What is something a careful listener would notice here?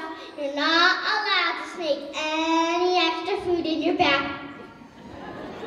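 A young girl sings into a microphone in a large hall.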